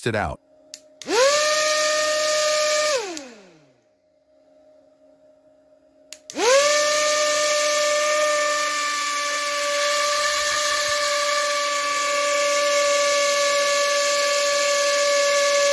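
A small electric motor whirs with a steady high hum as it spins a fan.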